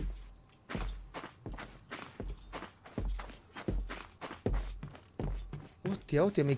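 Slow footsteps thud on a wooden floor.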